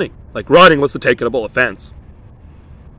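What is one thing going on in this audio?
A man speaks with animation, close to a phone microphone.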